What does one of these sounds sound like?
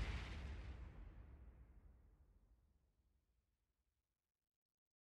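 A deep booming game sound effect slowly fades away.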